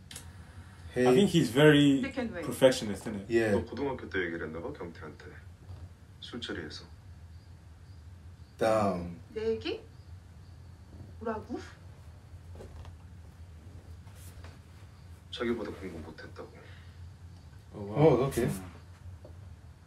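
Young men talk and chat casually nearby.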